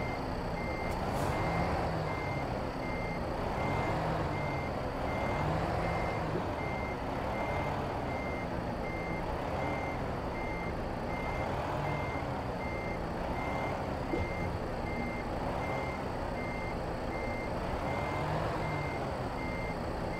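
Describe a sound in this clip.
A truck engine rumbles at a low, steady idle.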